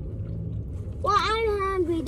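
A woman exclaims in a high, drawn-out voice.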